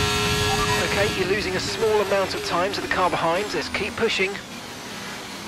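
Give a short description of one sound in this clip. Several racing cars roar past close by.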